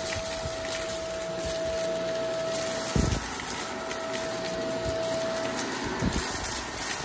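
Paper confetti flutters and rustles.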